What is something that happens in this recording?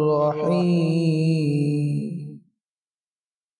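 A man chants in a long, melodic voice close to a microphone.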